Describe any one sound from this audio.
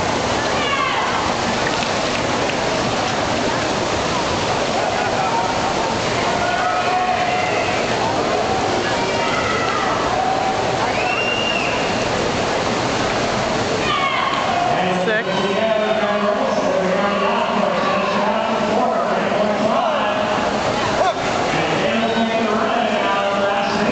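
A swimmer splashes through the water.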